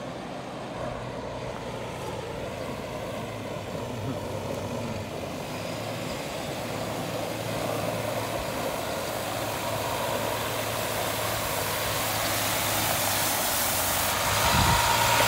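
A truck engine rumbles steadily as it drives closer.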